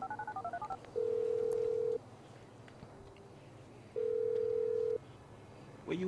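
A phone rings in long, steady tones.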